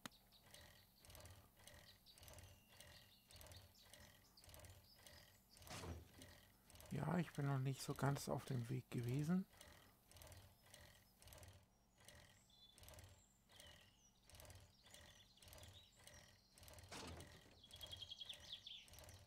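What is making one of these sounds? A bicycle rolls over rough grass with a steady, rhythmic creak and rattle.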